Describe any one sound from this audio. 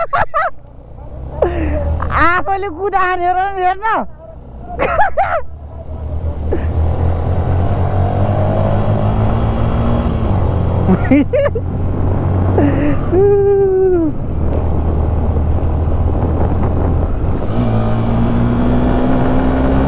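A motorcycle engine hums steadily while riding, with its pitch rising and falling as it speeds up and slows down.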